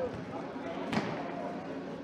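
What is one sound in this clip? A futsal ball is kicked hard, echoing in a large sports hall.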